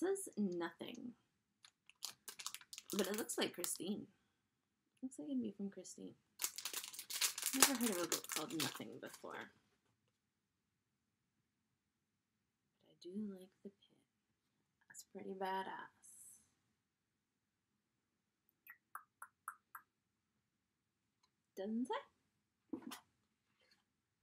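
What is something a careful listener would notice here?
Cardboard packaging rustles in a young woman's hands.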